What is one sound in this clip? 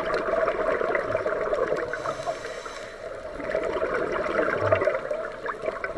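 A scuba diver breathes out, and bubbles rush and crackle underwater in slow, regular bursts.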